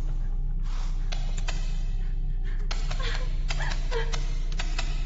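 A young woman sobs and gasps close by.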